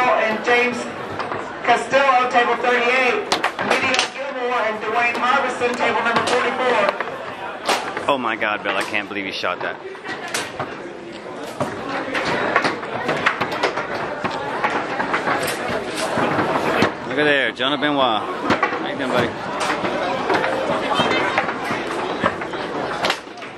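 Foosball rods rattle and spin.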